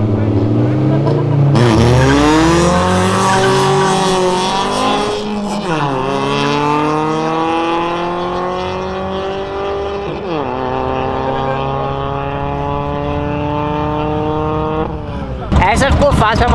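Car engines rev hard and roar as they accelerate away, shifting gears.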